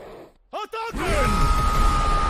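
Animated penguins squawk and shout loudly.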